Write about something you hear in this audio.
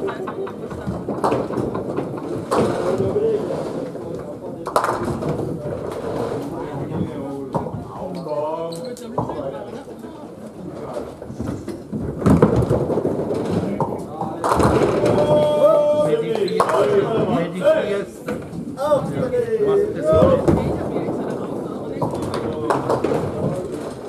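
Pins clatter as balls strike them.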